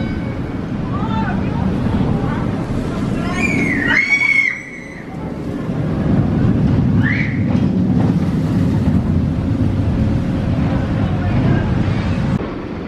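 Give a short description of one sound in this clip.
A steel roller coaster train rumbles and roars along its track.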